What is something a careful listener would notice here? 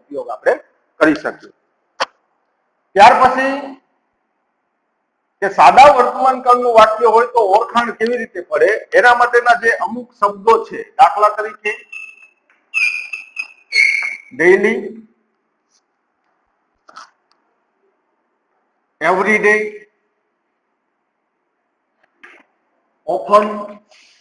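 A man speaks calmly and clearly nearby.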